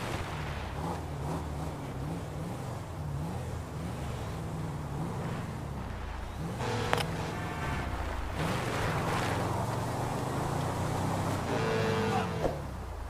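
A car engine hums and revs up and down while driving.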